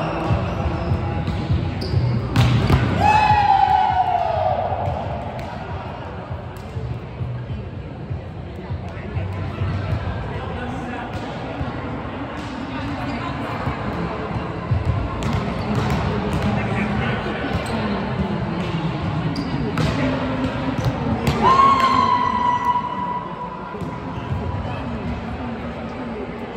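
A volleyball thuds off players' hands in a large echoing hall.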